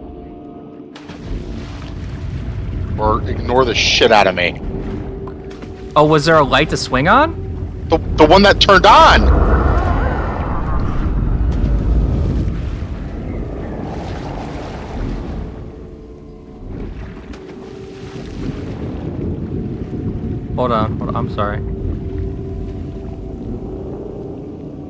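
Water sloshes and laps gently against floating wood.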